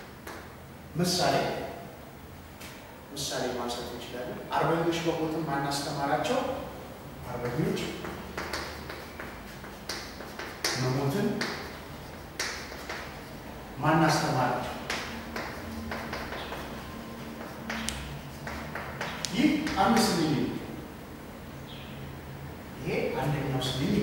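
A man speaks calmly and slowly, nearby.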